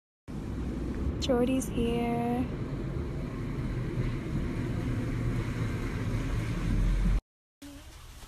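A car engine hums as a vehicle rolls slowly closer on pavement.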